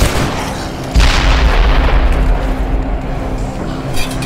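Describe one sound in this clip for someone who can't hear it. A gas canister explodes with a loud, rumbling blast.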